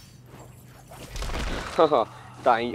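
Debris crashes and scatters.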